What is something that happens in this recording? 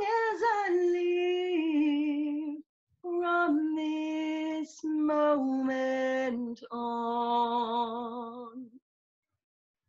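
A middle-aged woman talks with animation over an online call.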